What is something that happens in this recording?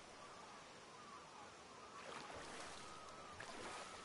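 A fishing rod swishes through the air.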